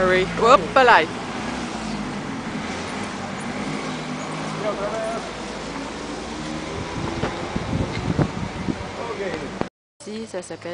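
A steady low hum of traffic fills the street outdoors.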